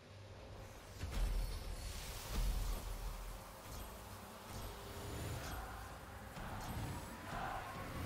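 A deep booming whoosh bursts out and rumbles on.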